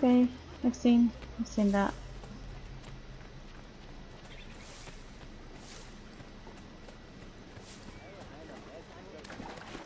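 Feet crunch through dry grass and dirt.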